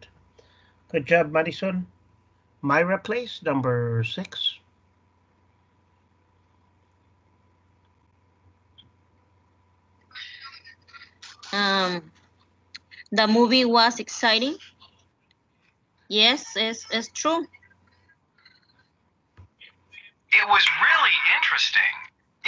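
A recorded message plays through a computer.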